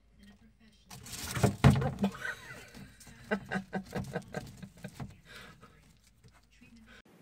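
A lizard crunches and chomps on food taken from tweezers.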